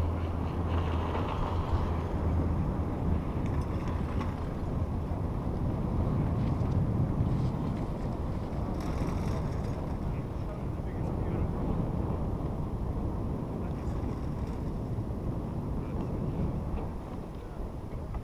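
Wind rushes steadily outdoors.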